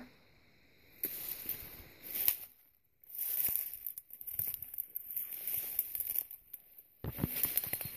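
Leafy plants rustle and brush close by.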